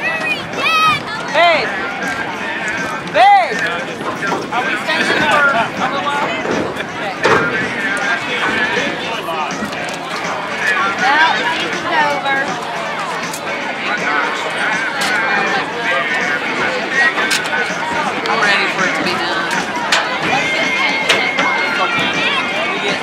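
Many children chatter and shout nearby.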